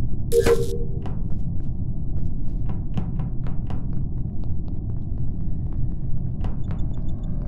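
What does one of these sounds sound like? Small footsteps patter quickly across a hard floor.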